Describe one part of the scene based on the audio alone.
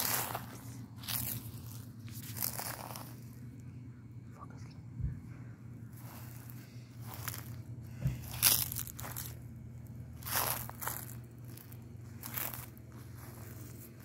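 Footsteps swish through grass.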